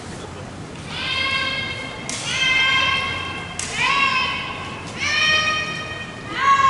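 Young women shout loud drawn-out calls in a large echoing hall.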